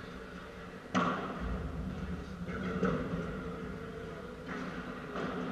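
A padel ball is struck sharply with a racket, echoing in a large hall.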